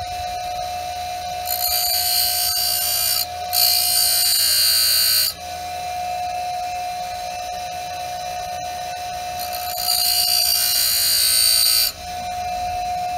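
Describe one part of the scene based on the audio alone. A bench grinder hums with a steady whine.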